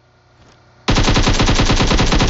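A rifle fires in a rapid burst of loud shots.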